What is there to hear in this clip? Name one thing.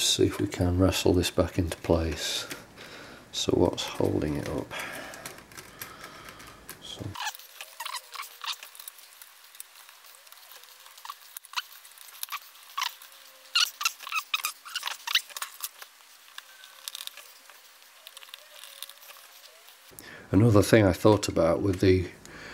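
Small plastic parts click and rattle as fingers handle them.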